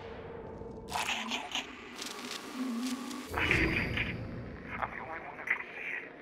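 A handheld radio crackles with loud static.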